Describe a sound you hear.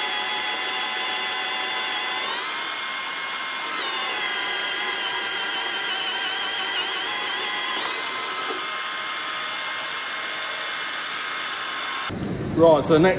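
A drill motor whines steadily as it bores into steel.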